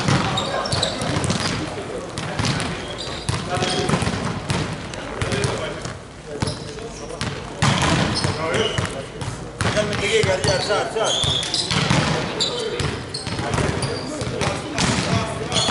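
Shoes squeak sharply on a hard court.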